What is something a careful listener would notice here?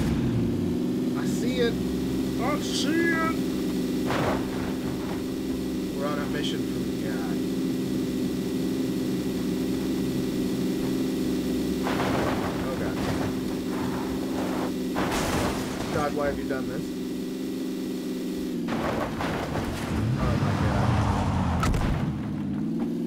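A car engine drones steadily at high revs.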